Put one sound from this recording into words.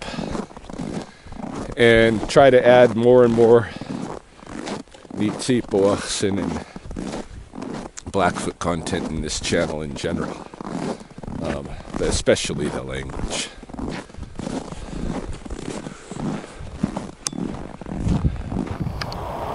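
A middle-aged man talks close to a microphone with animation, outdoors.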